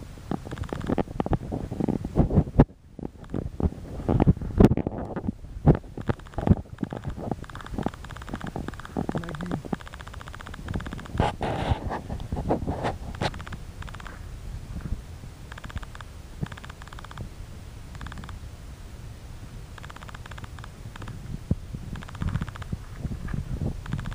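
A dog crunches and plows through deep snow.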